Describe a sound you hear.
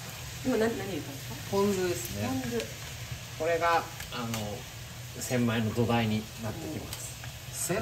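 Chopsticks scrape and stir food in a frying pan.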